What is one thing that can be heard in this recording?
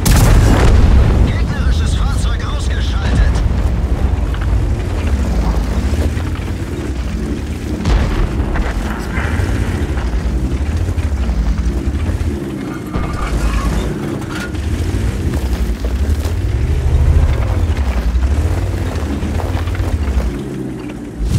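A tank engine rumbles deeply and steadily.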